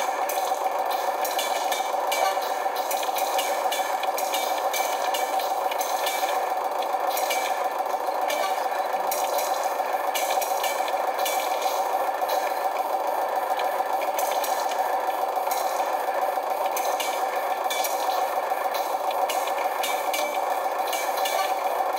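Video game music plays steadily through a television speaker.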